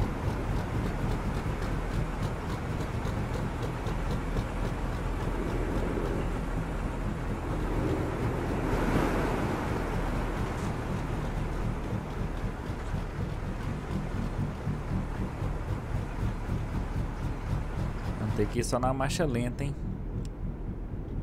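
Water rushes and splashes around truck tyres.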